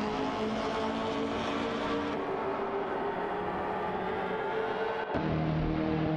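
A racing car engine whines at a distance.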